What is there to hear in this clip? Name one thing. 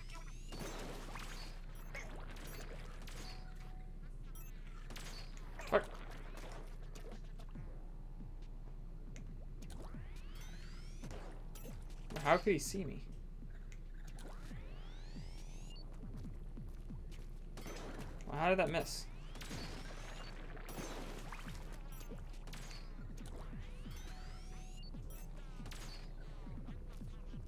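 Video game guns fire with sharp, squelching shots.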